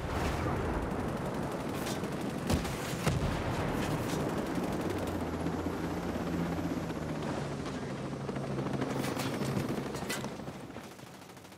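A helicopter's rotor thuds loudly overhead.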